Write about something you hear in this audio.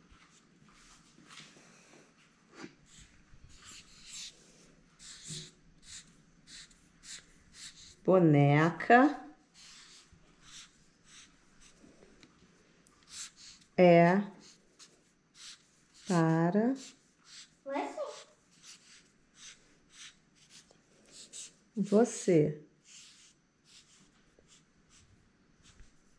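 A marker squeaks in short strokes across paper.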